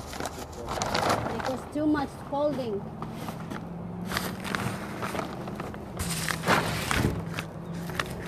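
Footsteps scuff on rock close by.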